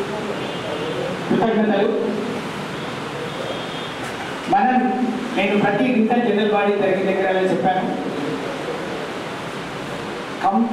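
A middle-aged man speaks with animation into a microphone, heard through a loudspeaker in an echoing room.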